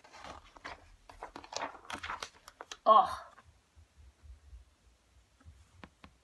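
Paper pages rustle as a book's pages turn.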